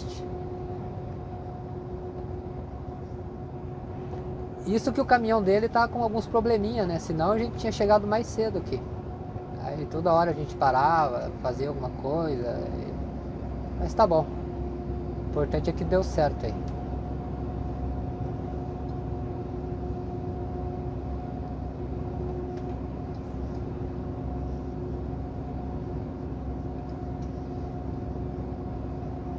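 Tyres roll on asphalt with a low rumble.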